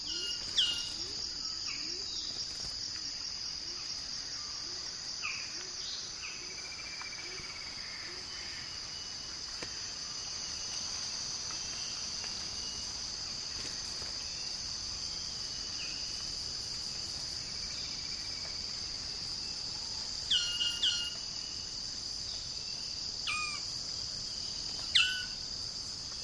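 A bird gives short, sharp, piercing calls now and then.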